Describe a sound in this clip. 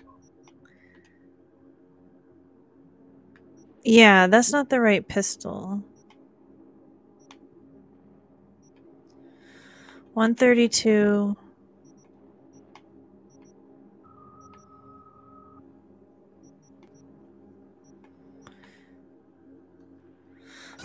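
Soft menu clicks tick now and then as items are selected.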